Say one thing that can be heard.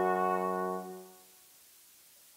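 A brass ensemble holds a loud final chord that rings out in a large echoing hall.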